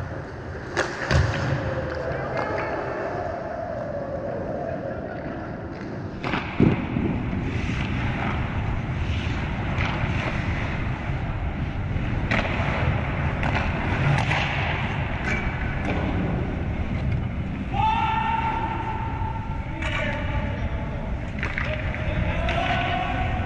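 Skate blades scrape and hiss across ice nearby.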